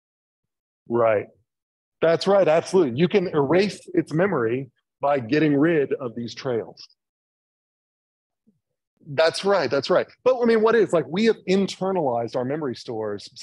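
A man lectures calmly through a microphone, with pauses.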